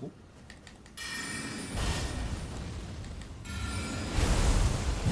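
Magic spells burst with a loud whoosh.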